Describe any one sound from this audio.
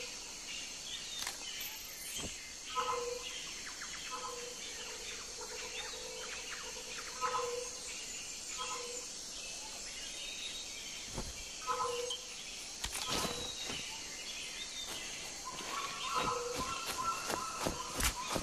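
Insects and birds chirp steadily in a jungle.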